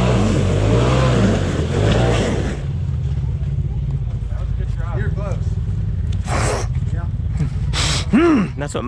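An off-road vehicle's engine rumbles and revs up and down close by.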